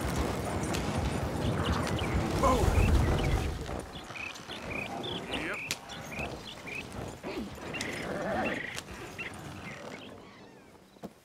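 A horse-drawn wagon rumbles and creaks over rough ground.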